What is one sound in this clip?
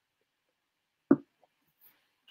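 A cup knocks down onto a surface.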